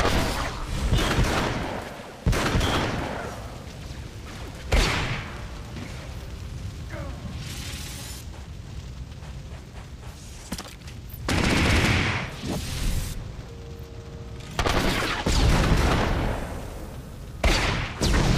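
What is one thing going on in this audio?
Blaster shots and explosions burst in a fight.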